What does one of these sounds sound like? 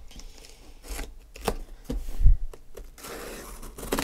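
A blade slices through packing tape.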